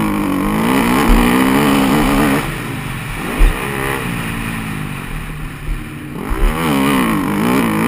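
A dirt bike engine revs hard, rising and falling in pitch as the rider shifts gears.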